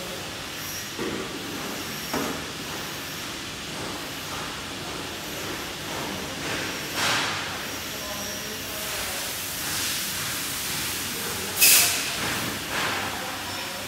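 Mechanical parts of a machine knock and clatter now and then.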